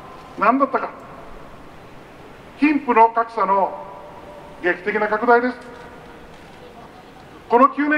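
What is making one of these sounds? An elderly man speaks forcefully into a microphone through a loudspeaker, in short phrases with pauses.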